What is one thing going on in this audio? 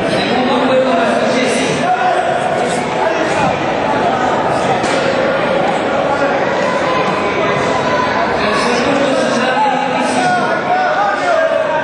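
Men talk to one another nearby.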